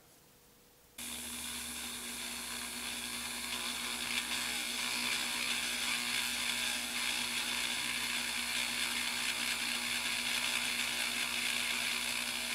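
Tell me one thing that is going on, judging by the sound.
A rotary tool whirs steadily at high speed.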